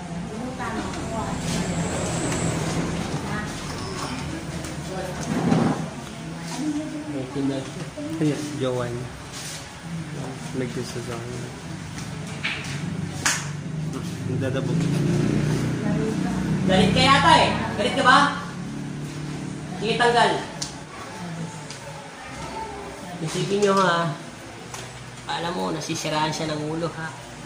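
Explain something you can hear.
Several people talk and chatter nearby.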